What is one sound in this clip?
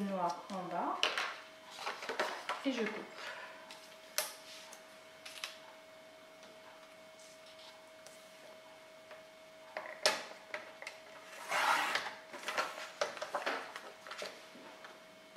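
Paper rustles as it is handled.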